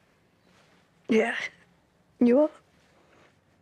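A woman answers softly.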